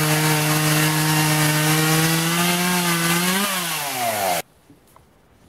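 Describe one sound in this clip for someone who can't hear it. A chainsaw engine runs loudly, then slows and cuts out.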